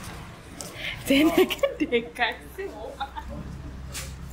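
A middle-aged woman laughs close by.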